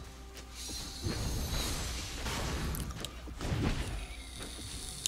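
Game sound effects of a battle clash and burst.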